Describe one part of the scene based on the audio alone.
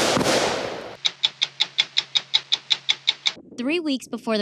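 A stopwatch ticks steadily.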